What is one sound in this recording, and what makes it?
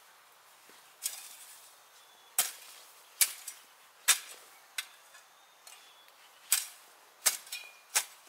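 A hoe chops into soil with dull thuds, one blow after another.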